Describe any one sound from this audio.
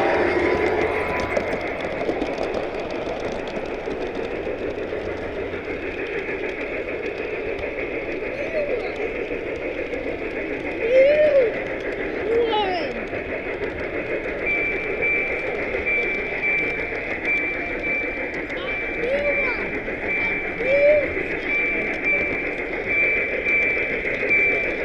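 A model train rolls along its track with a steady rumble.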